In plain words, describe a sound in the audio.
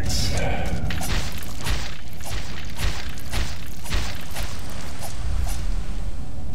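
Sword blows slash and thud in quick succession.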